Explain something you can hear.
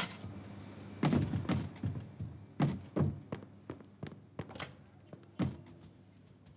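Footsteps tread across a wooden floor indoors.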